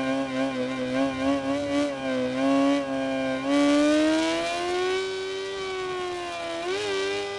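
A motorcycle engine whines loudly, rising in pitch as it speeds up after a gear change.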